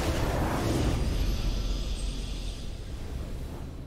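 A triumphant victory fanfare swells and then fades.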